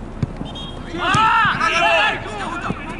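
Young men shout to each other outdoors across an open field.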